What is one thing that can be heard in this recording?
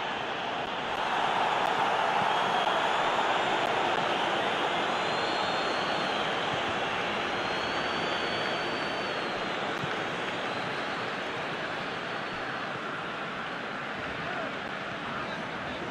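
A large stadium crowd roars steadily, swelling a little and then easing off.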